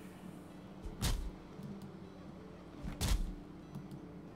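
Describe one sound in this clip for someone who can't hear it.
An axe chops into a tree trunk with heavy thuds.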